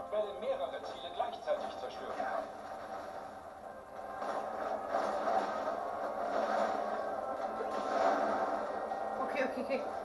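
Video game music and effects play from a television speaker.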